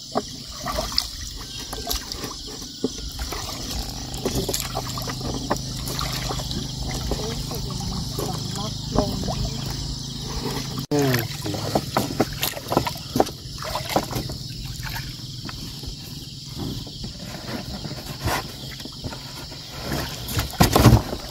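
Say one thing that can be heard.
Water laps and splashes against a small boat.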